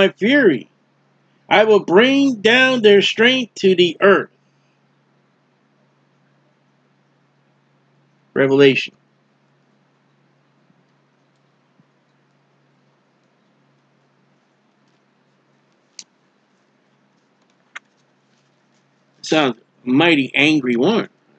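A middle-aged man speaks calmly and close into a microphone, with pauses.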